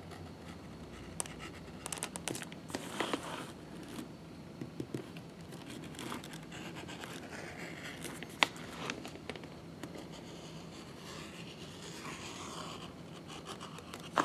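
Thread rasps as a needle is drawn through leather in hand saddle stitching.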